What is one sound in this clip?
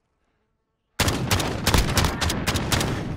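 A rifle fires rapidly, loud and close.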